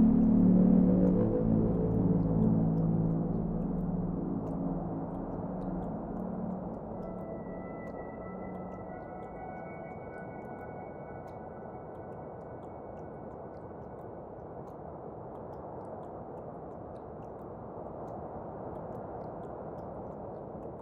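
Wall fans hum steadily.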